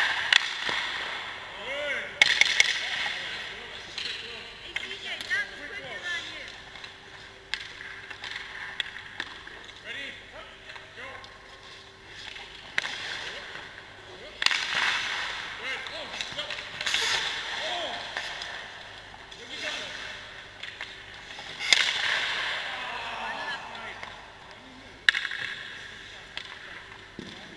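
Skates scrape and hiss across the ice nearby.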